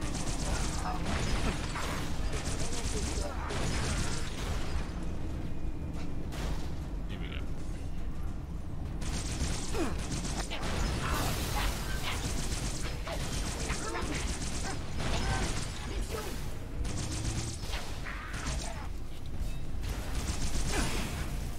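A game gun fires bursts of sharp shots.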